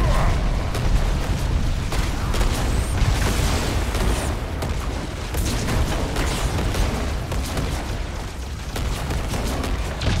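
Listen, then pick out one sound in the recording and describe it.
Energy weapons fire in sharp, repeated shots.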